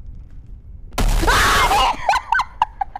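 A young woman screams loudly into a close microphone.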